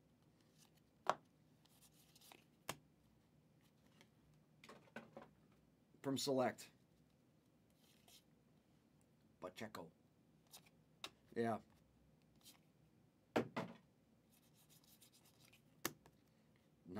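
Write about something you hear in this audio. Trading cards click and rustle as hands shuffle through them.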